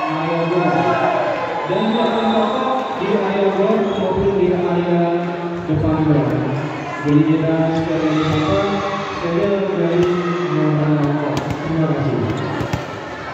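Young men chant and shout together loudly.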